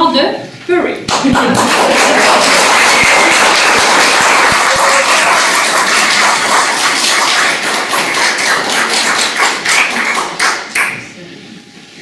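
A group of people applaud.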